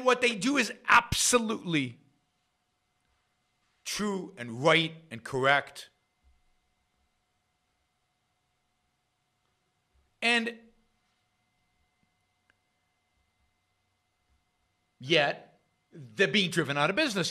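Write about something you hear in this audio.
An older man speaks calmly into a close microphone, in short bursts with pauses.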